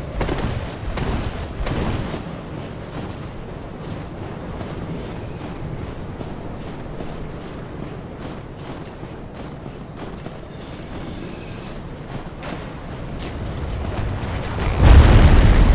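A steady wind blows outdoors.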